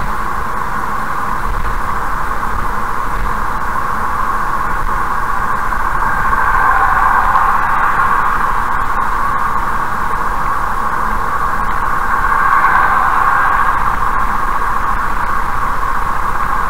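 Tyres roar steadily on a fast highway as a car drives along.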